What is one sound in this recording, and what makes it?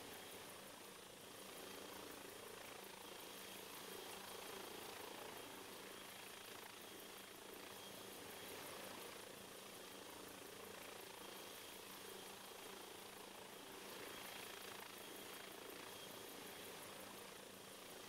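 Helicopter rotor blades thump in a fast, even beat.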